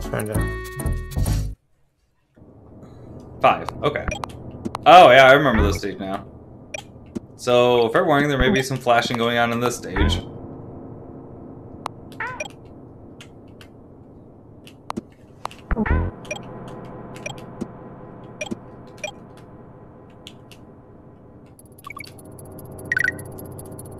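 Short video game sound effects chime and blip.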